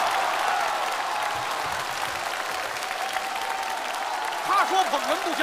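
A large audience cheers and applauds loudly.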